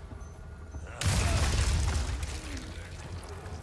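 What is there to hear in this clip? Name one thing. Wooden planks crash and splinter loudly.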